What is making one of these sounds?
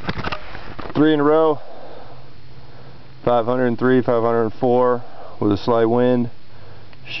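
A young man speaks close up, in short bursts.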